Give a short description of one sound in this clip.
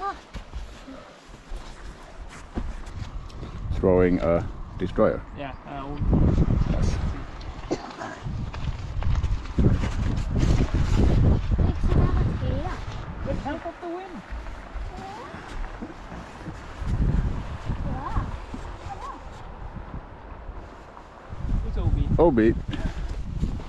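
Wind buffets outdoors in gusts.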